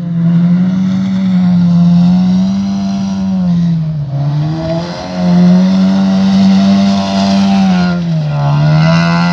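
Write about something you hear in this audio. A car engine roars loudly close by, revving up and down.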